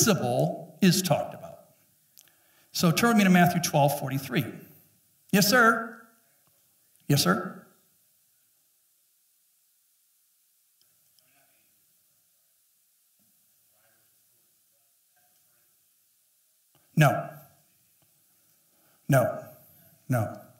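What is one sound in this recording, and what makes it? A man speaks through a headset microphone in bursts, with long pauses between phrases.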